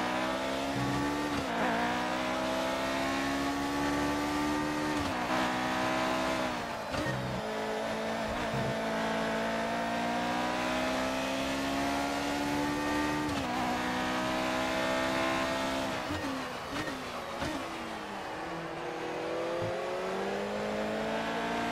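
A racing car engine screams at high revs, dropping sharply with each gear shift.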